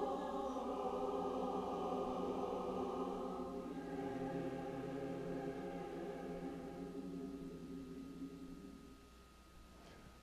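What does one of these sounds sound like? Organ music holds a final chord and slowly fades away.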